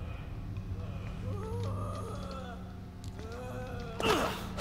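A creature groans and snarls nearby.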